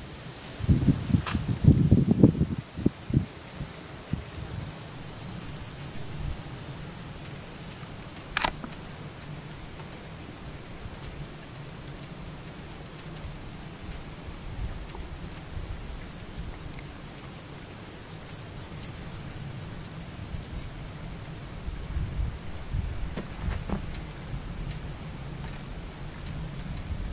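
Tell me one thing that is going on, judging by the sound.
Wind blows outdoors in gusts.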